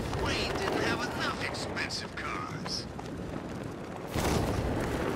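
Wind rushes loudly past during a fast glide.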